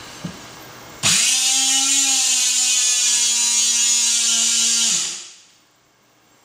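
An electric motor whines loudly and steadily, then winds down.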